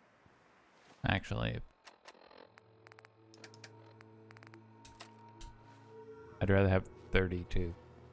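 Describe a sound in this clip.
Short electronic clicks and beeps sound as a menu is browsed.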